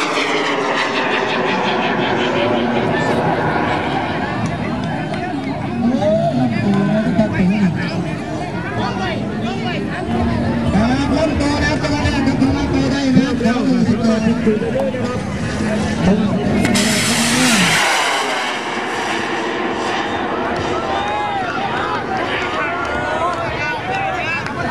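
A rocket roars as it climbs into the sky.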